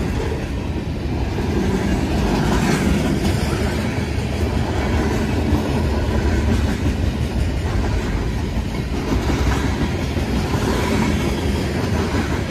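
A freight train rumbles past close by.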